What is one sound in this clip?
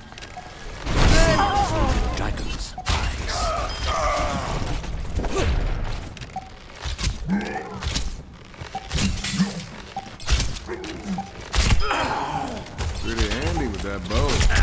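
A bow twangs as arrows are loosed in quick bursts.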